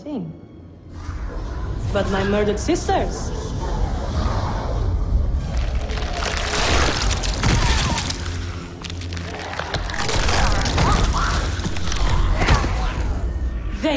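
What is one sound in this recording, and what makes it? A blast of energy explodes with a roar.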